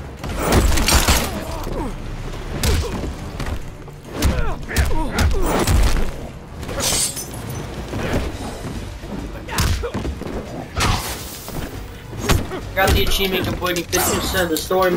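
Punches and kicks land with heavy thuds and smacks.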